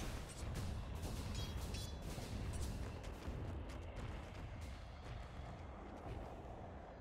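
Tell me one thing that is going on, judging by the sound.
Swords clash and spells crackle in a fierce fight.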